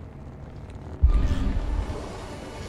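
A lightsaber hums and swings in a fight.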